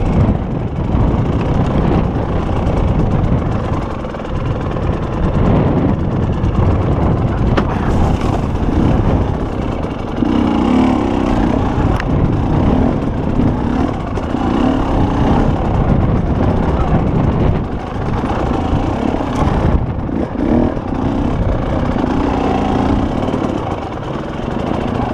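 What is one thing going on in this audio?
A dirt bike engine revs and sputters up close.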